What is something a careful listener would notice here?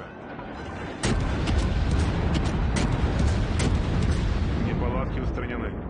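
Heavy naval guns boom several times, followed by a low rumble.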